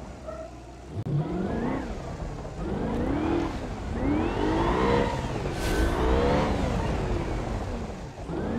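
An off-road buggy's engine revs loudly, rising and falling again and again.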